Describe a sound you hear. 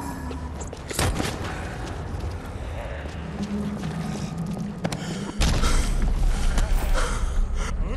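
A wooden bat thuds heavily against bodies.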